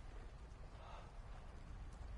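A man breathes heavily and groans close by.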